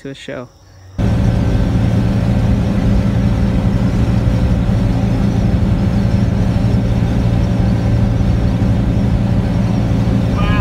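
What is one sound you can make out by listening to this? A car drives steadily along a highway, its tyres and engine rumbling low.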